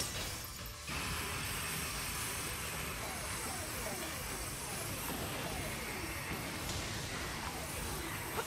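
Electric energy crackles and buzzes loudly.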